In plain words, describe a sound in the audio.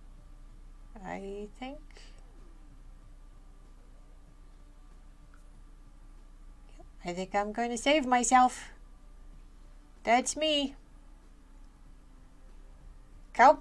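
A young woman speaks in a high, playful, animated voice, close to a microphone, in short bursts.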